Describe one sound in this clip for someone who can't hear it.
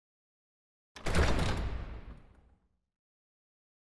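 A heavy door slams shut with a booming echo.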